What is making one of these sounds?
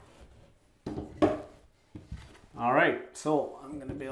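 A plastic panel knocks as it is pulled from the wall.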